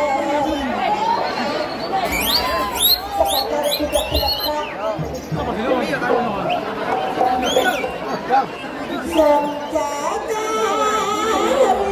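A large crowd of young men and boys talks and calls out loudly outdoors.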